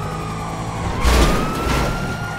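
A car crashes into something with a loud bang.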